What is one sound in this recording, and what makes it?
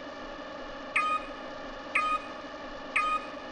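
Short electronic beeps count down, one each second.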